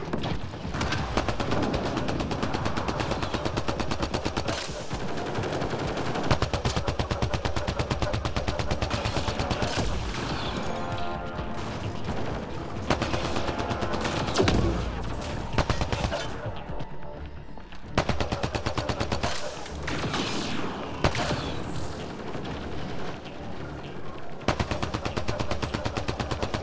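Sniper shots crack sharply.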